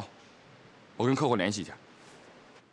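A young man speaks briefly and calmly.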